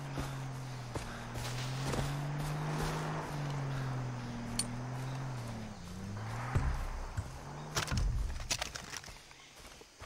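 Footsteps rustle through dense grass and leaves.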